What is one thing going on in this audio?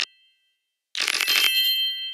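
Playing cards slide with a soft swish.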